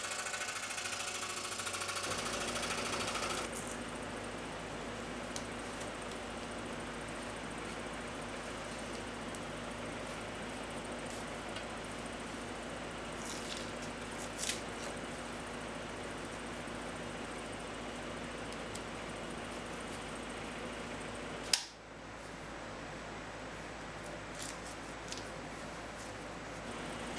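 A scroll saw hums and buzzes steadily as it cuts through wood.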